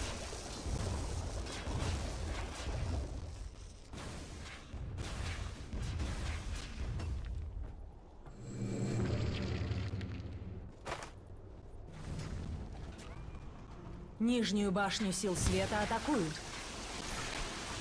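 A magic spell whooshes and hums.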